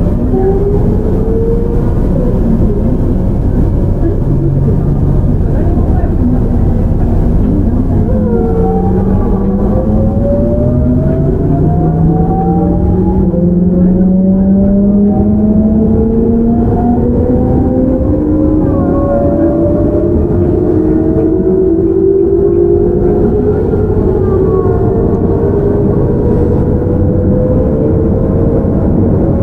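Train wheels rumble low on the rails.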